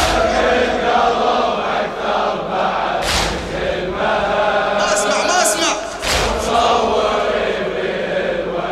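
A man sings a mournful chant loudly through a microphone in a large echoing hall.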